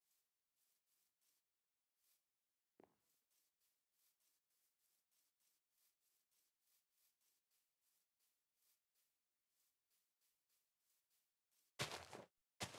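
Soft footsteps tread steadily over grass.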